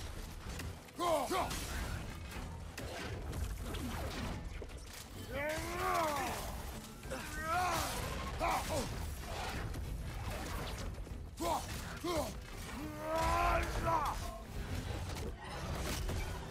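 Heavy weapon blows thud and crack.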